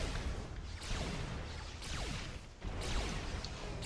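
Magic spells crackle and zap in a game.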